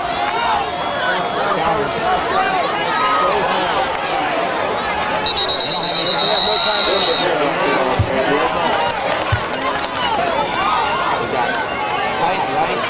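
A crowd of young men and spectators shouts and cheers outdoors.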